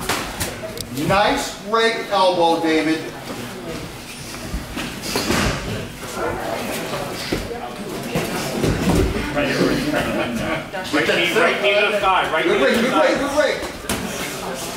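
A man calls out instructions nearby, in a room that echoes slightly.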